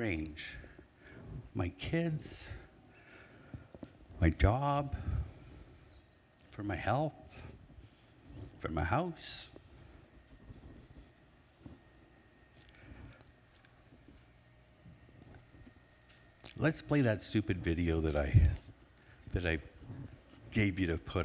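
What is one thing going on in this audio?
A middle-aged man speaks with animation in a large echoing hall, heard through a microphone.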